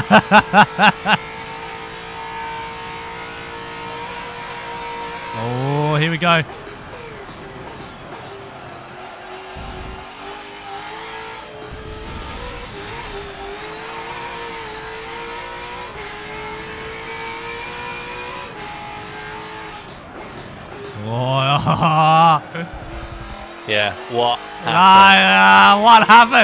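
A racing car engine roars and revs up and down as the gears change.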